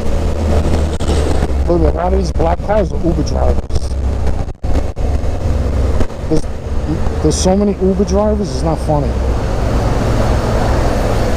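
Wind buffets loudly against a moving motorcycle.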